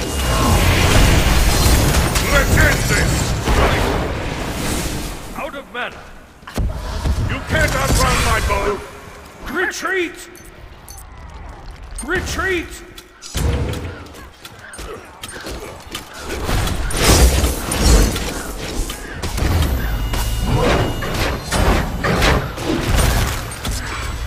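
Magic spells blast and crackle in a video game battle.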